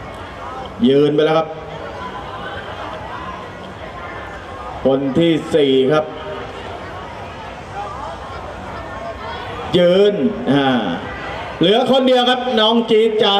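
A crowd murmurs in the background outdoors.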